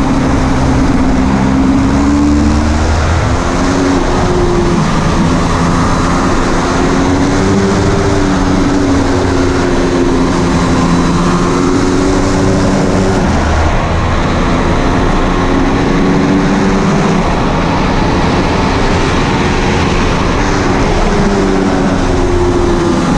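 Wind rushes hard past the rider.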